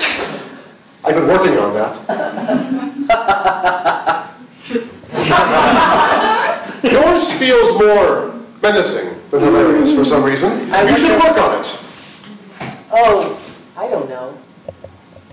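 A woman speaks and laughs on a stage.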